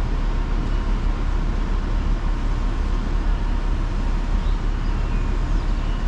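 A crane's diesel engine rumbles steadily in the distance.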